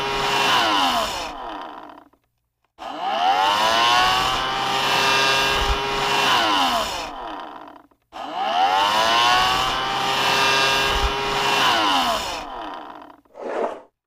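A chainsaw revs loudly in bursts.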